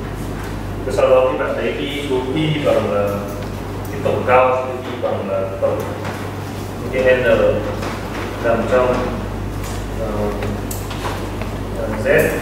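A man lectures in a calm voice in a hall.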